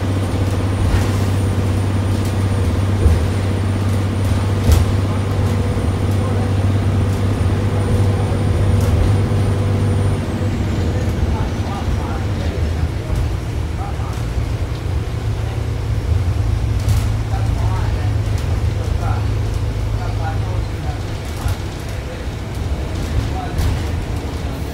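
Wheels clack and knock on the rails.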